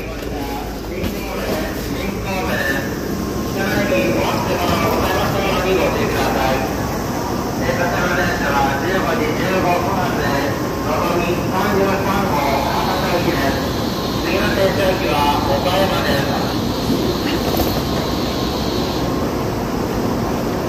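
Many voices murmur in a large, echoing space.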